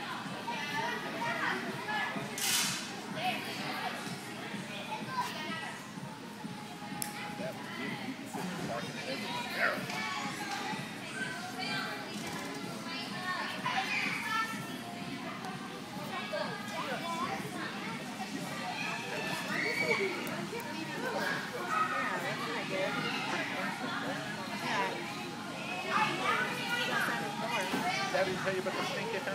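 Girls chatter and call out in a large echoing gym.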